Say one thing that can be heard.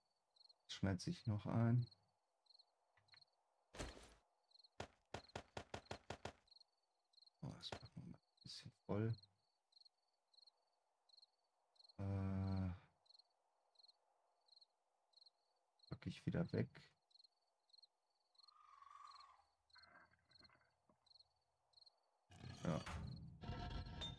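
A man talks casually into a close microphone, in short bursts.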